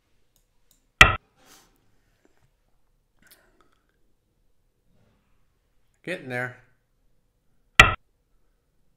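A game stone clacks sharply onto a board.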